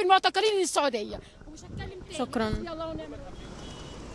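A woman speaks into a microphone close by, with animation.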